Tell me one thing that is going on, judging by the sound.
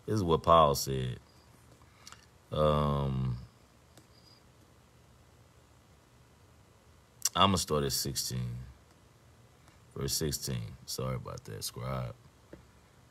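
A middle-aged man speaks calmly and close by, in short phrases with pauses.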